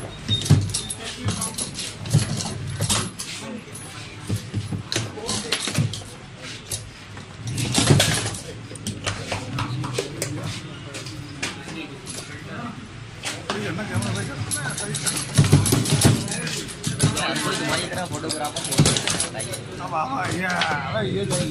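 Metal rods of a foosball table clunk and rattle as they are spun and slid.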